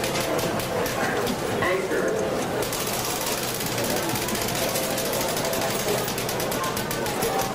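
A crowd murmurs and chatters in a large, busy hall.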